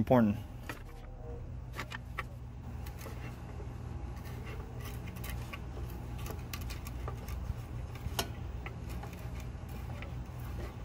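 A wooden stick scrapes and clicks against a plastic connector.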